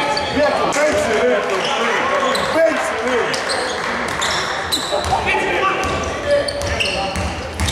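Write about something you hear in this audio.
Voices of players and spectators echo through a large hall.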